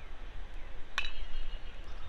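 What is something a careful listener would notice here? A bat cracks against a baseball outdoors.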